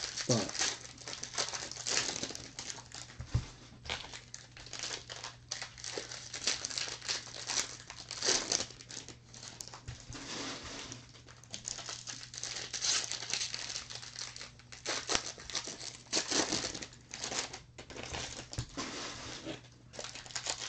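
Plastic card wrappers crinkle and rustle in hands.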